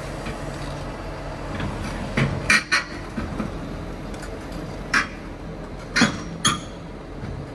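Steel tracks clank and creak as an excavator climbs onto a trailer.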